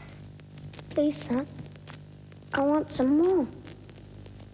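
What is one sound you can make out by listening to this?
A young boy speaks with emotion.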